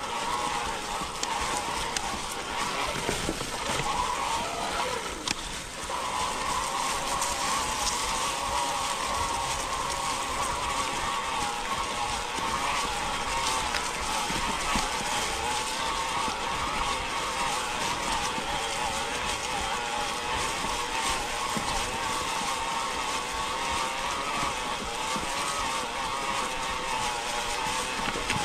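An electric bike motor whines steadily.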